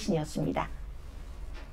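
A woman speaks briefly and cheerfully, close by.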